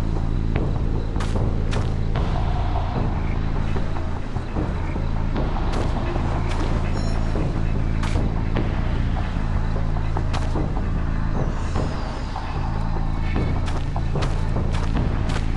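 Footsteps walk steadily through grass.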